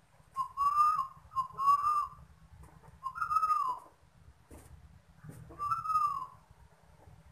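A dove coos loudly in short repeated calls close by.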